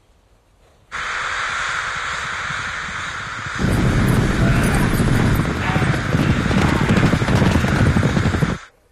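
A flock of birds roars overhead.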